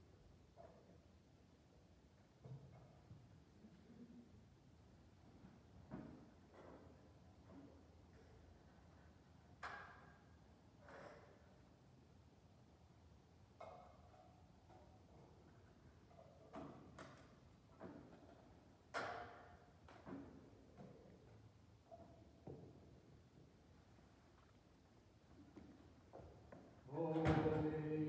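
An elderly man speaks quietly and slowly in a large echoing room.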